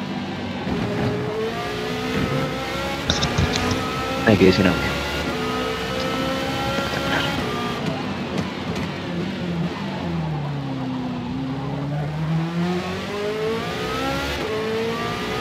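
A racing car engine roars and whines, rising in pitch and dropping as it brakes.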